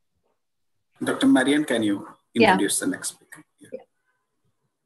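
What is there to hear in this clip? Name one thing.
A middle-aged man speaks over an online call.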